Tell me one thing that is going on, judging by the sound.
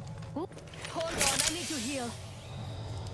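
A video game character injects a healing syringe with a short hiss.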